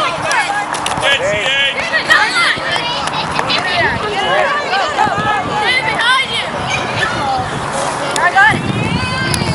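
Several men and women shout and cheer from the sidelines outdoors.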